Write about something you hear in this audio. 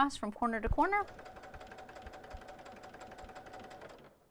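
A sewing machine hums steadily as it stitches.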